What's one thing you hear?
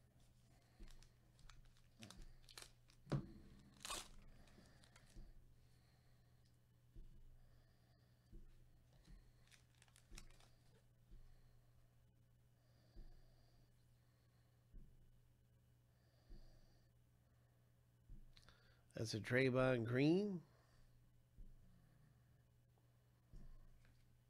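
Cards tap and slide against each other.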